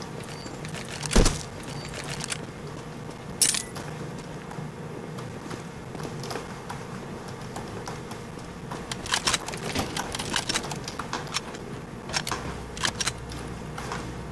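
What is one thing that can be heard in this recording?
Footsteps thud quickly on dirt and wooden boards.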